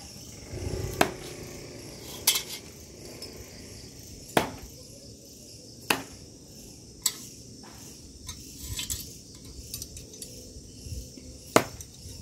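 A thrown knife thuds into a wooden target.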